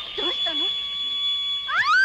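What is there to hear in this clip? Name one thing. A young woman speaks up close.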